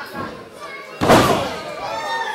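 Bodies slam hard onto a ring canvas with a loud thud.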